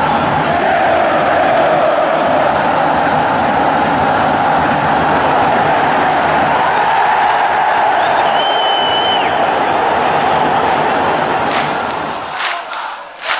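A huge stadium crowd sings and chants loudly together.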